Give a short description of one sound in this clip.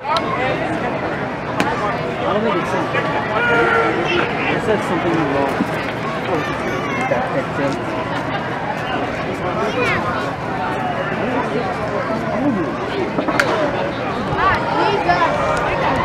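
A crowd chatters in the stands.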